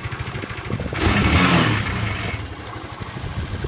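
A motorcycle engine revs up briefly and settles.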